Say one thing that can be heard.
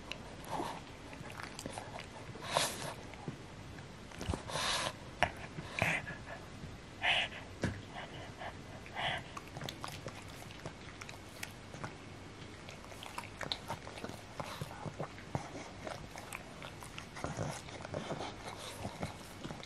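A dog licks and smacks its lips wetly up close.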